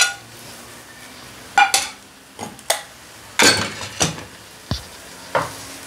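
A wooden spatula scrapes in a metal pan.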